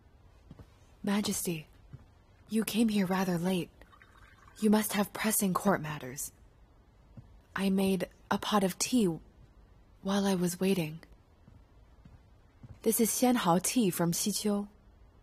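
A young woman speaks softly nearby.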